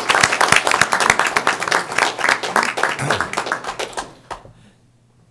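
A small crowd claps and applauds in a large room.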